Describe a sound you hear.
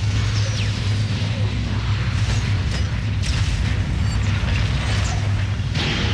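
Spaceships explode with dull booms.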